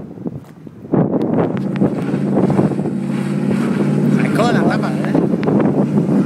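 A car engine revs loudly nearby.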